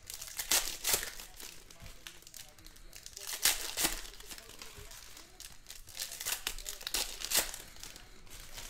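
Foil wrappers crinkle and tear as card packs are opened.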